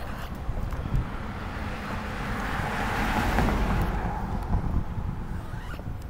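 A car drives past nearby, rising and then fading.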